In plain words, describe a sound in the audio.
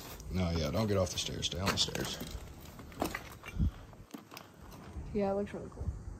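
Footsteps crunch on broken bricks and rubble.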